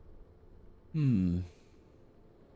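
A young man says a few loud words close to a microphone.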